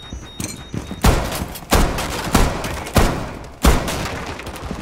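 Gunshots crack loudly in quick succession.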